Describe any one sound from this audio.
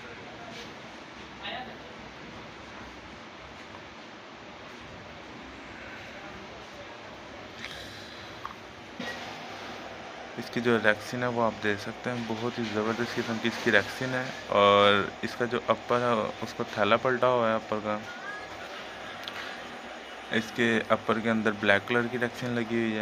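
Shoes rustle and tap softly as a hand picks them up and turns them.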